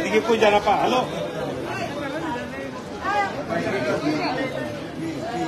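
A crowd of men and women talk over one another close by.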